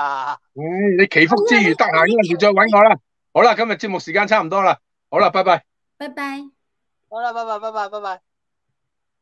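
An elderly man speaks with animation over an online call.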